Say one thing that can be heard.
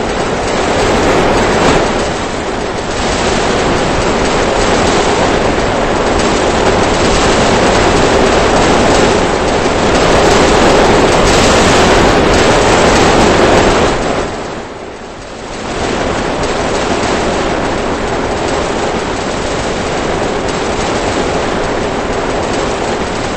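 Explosions boom and crackle in rapid succession.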